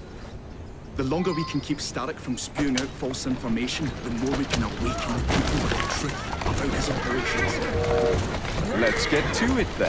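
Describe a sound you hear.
Carriage wheels rattle over a cobbled road.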